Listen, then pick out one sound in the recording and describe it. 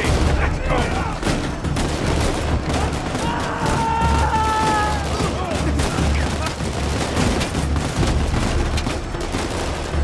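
Gunshots crack repeatedly.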